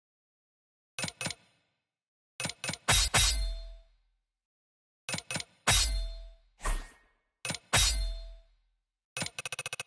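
Game menu sound effects chime and whoosh as points are assigned.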